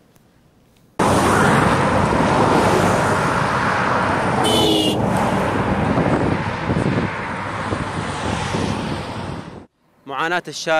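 Traffic rushes past on a road outdoors.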